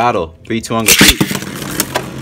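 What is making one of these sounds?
A top launcher rips sharply.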